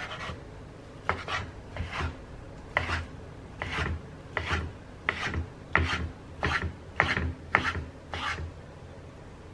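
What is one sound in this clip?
A knife chops quickly on a wooden board, with sharp rhythmic knocks.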